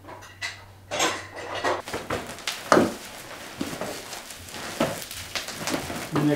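Objects rustle and clatter as a suitcase is packed.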